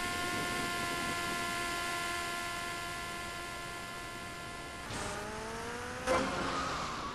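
A motorcycle engine hums steadily, then its pitch shifts.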